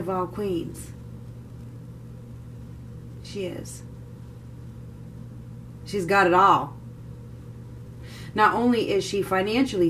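A woman speaks calmly and close by, with short pauses.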